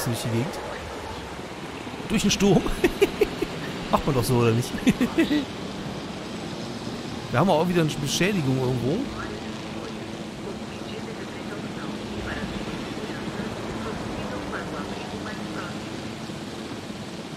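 A helicopter's rotor hums steadily as it flies.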